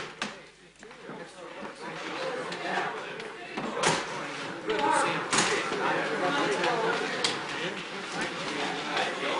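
A crowd of men talk and shout excitedly.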